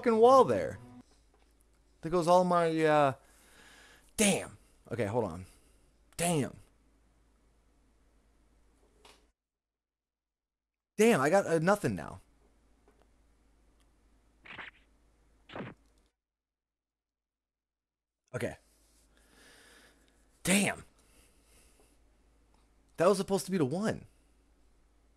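A young man talks animatedly into a close microphone, in bursts with pauses.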